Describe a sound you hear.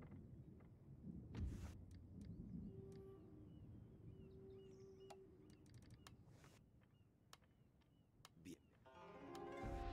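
Soft interface clicks sound as menus open.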